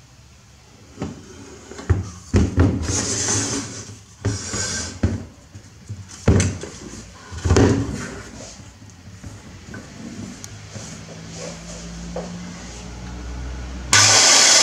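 A metal power saw clunks and scrapes as it is moved about on a hard floor.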